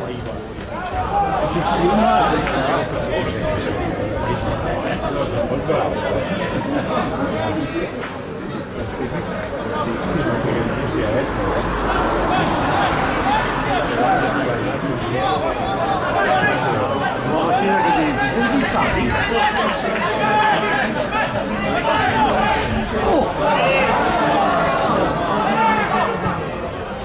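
A crowd of spectators shouts and chatters in an open-air stadium.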